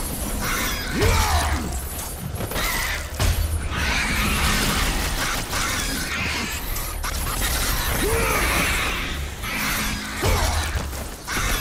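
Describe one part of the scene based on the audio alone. Winged creatures screech.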